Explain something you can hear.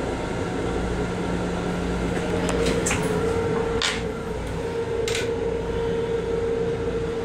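A train rumbles steadily while moving.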